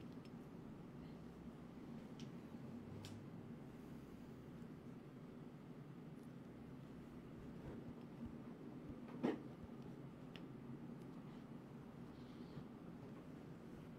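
Hands handle and rub soft fabric.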